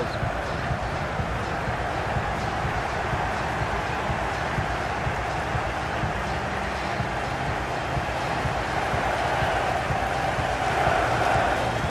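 A large stadium crowd cheers and chants in a loud roar that swells toward the end.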